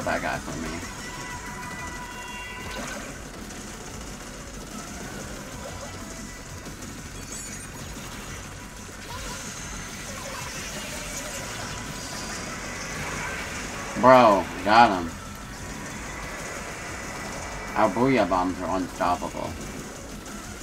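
Video game sound effects of splashing shots and bursts play throughout.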